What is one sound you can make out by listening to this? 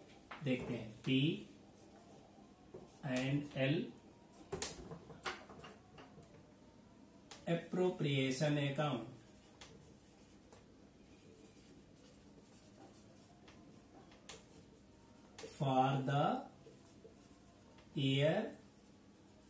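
A man speaks calmly, in pauses, close by.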